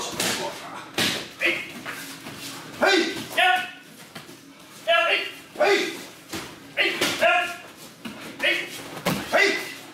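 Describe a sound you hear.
Bodies thud onto padded mats.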